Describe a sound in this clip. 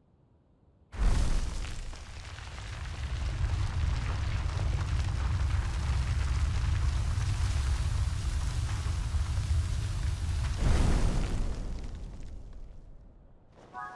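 Wind rushes loudly, as if high up in open air.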